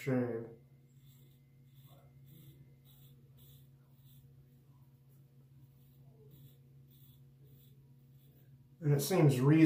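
A razor scrapes through stubble in short, regular strokes.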